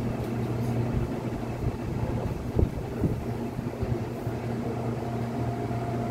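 Train wheels knock and clatter on the rails.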